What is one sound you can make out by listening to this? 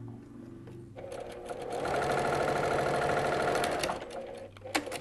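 A sewing machine hums and stitches steadily.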